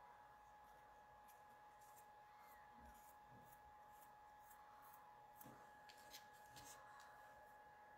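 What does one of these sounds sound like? Fingers dab and tap a sponge softly on paper.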